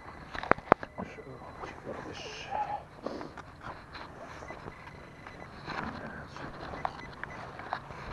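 A trowel scrapes and digs into soil.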